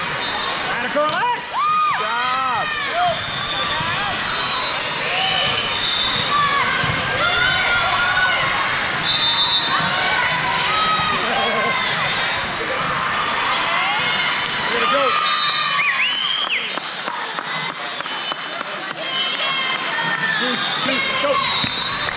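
Many voices shout and chatter, echoing in a large hall.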